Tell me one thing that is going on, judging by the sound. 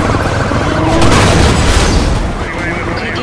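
Cars crash together with a loud metallic bang.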